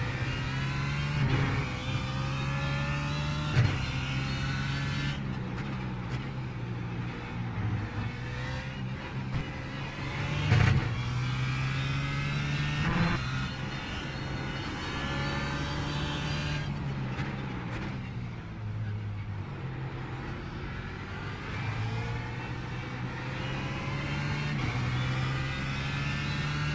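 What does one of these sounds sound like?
A racing car engine revs high, rising and dropping as it shifts gears.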